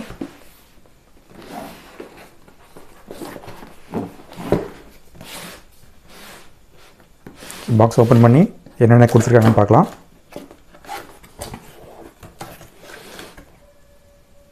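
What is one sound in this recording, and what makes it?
A cardboard box rustles and scrapes.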